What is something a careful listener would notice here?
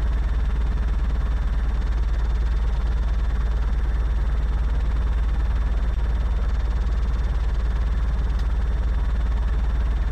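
A small plane's piston engine drones steadily.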